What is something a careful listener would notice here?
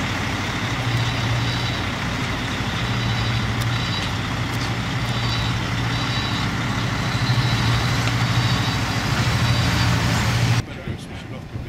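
A heavy truck engine rumbles as the vehicle drives slowly past.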